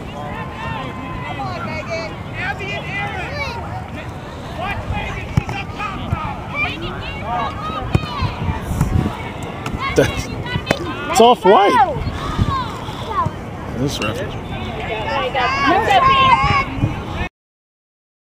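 Young girls shout and call to each other outdoors.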